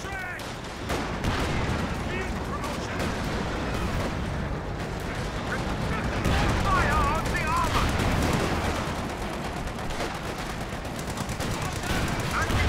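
Distant gunfire crackles in scattered bursts.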